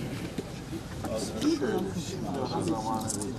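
An elderly man speaks with emotion up close.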